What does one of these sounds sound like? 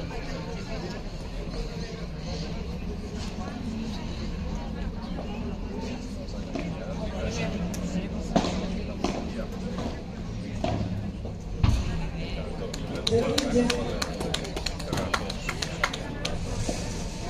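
Padel rackets strike a ball with sharp pops.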